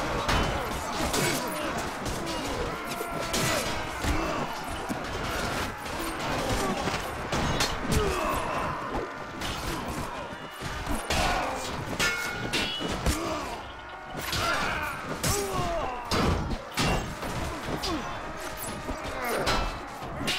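Many men shout and yell in a battle.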